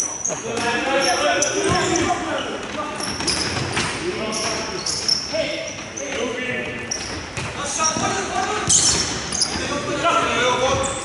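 Players shout to each other across a large echoing hall.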